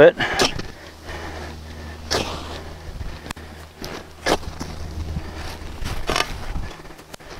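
A shovel scrapes and thuds into dry soil again and again.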